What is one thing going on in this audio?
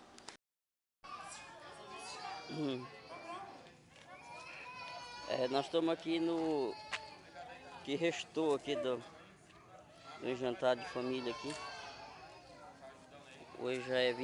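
Men and women chat casually at a gathering outdoors.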